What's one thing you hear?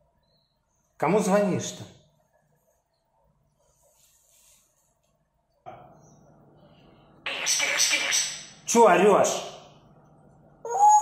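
A parrot talks and squawks close by in a voice-like chatter.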